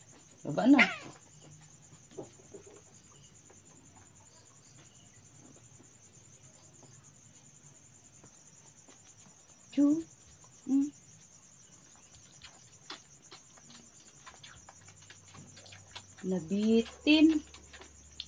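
A puppy whimpers and cries in high yelps.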